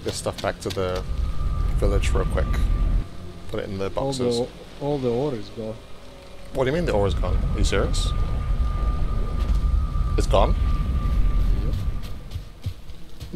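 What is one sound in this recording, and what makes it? A magical portal roars with a deep rumbling whoosh.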